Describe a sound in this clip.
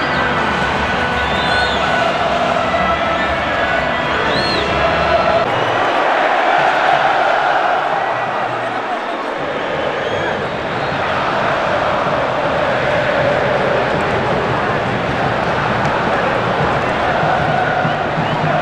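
A large stadium crowd roars and chants loudly.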